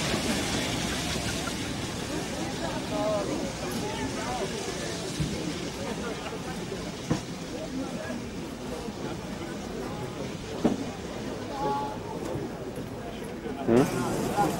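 A crowd of people chatter in the distance outdoors.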